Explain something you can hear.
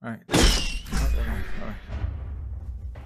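A cartoonish explosion bursts with a loud bang.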